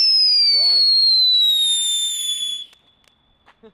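A firework whistles with a falling pitch.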